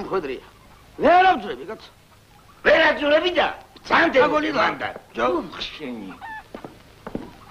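A man talks loudly with animation.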